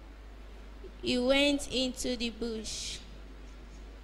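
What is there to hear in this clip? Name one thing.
A young girl speaks clearly into a microphone through loudspeakers.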